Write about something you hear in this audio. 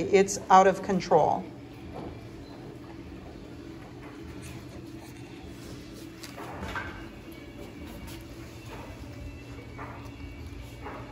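Puppies chew and lap at food softly.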